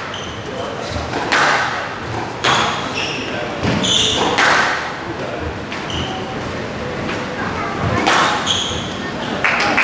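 Sports shoes squeak on a wooden court floor.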